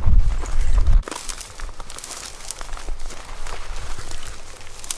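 Dry grass rustles as people push through it.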